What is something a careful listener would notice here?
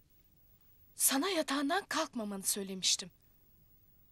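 A woman speaks up with agitation, close by.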